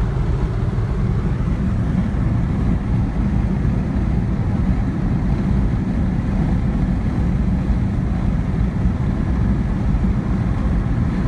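A car engine hums steadily, heard from inside the car.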